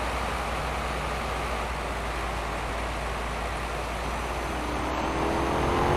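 Tyres roll on smooth asphalt.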